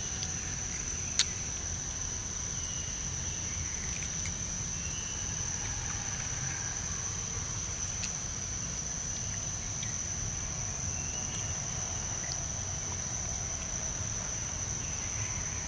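A monkey chews and munches on food close by.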